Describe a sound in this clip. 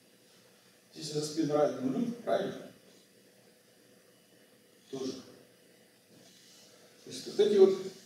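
An elderly man speaks calmly in short bursts with pauses, in a room with a slight echo.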